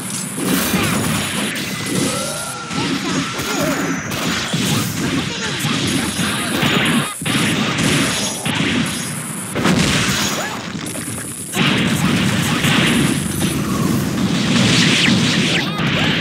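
Rapid fighting game hits and blasts crash one after another.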